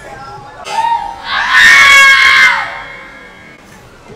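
A young woman screams in fright.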